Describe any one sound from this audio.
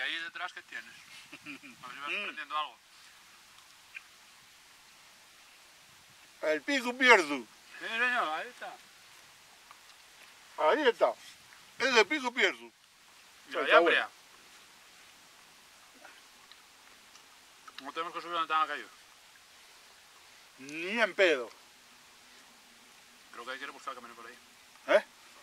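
A middle-aged man talks calmly nearby, outdoors.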